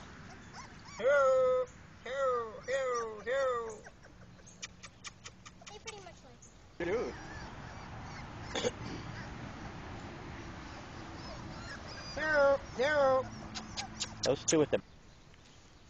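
Puppies yelp and whine close by.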